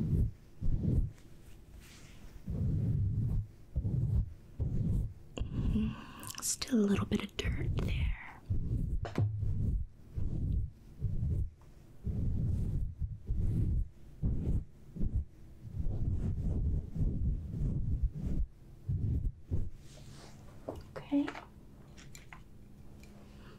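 A woman whispers softly close to a microphone.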